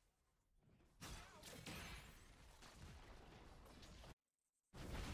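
A loud magic blast bursts and roars.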